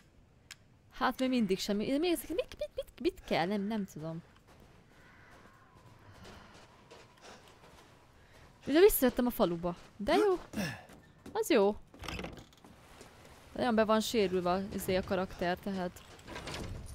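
A young woman talks with animation, close to a microphone.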